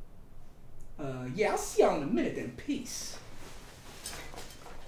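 A second young man speaks firmly nearby.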